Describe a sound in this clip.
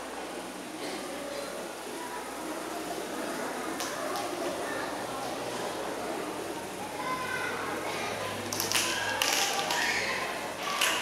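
Children's feet shuffle and tap on a hard floor as they dance.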